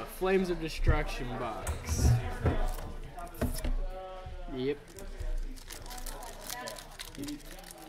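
Playing cards rustle and slide as they are handled.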